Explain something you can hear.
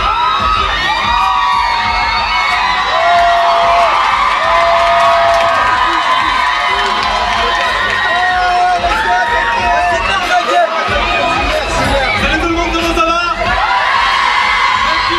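A man raps into a microphone over loudspeakers, echoing in a loud hall.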